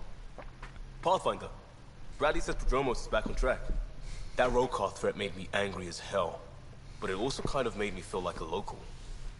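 A young man speaks calmly in a conversation.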